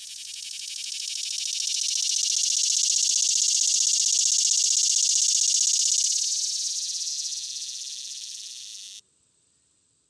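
A cicada buzzes loudly in a shrill, steady drone that swells and then fades.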